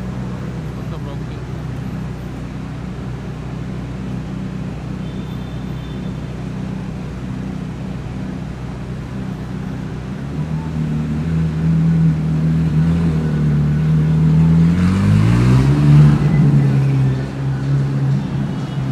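A sports car engine idles with a deep, steady rumble.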